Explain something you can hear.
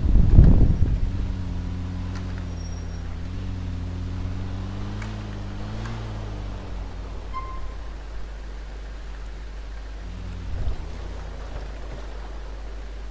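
A car engine hums steadily as the vehicle drives.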